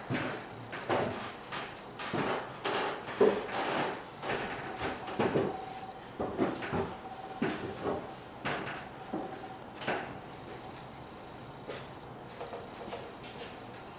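A man plays a piano in a slow, halting way.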